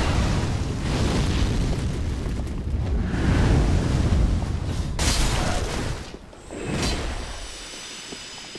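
A heavy blade whooshes through the air in repeated swings.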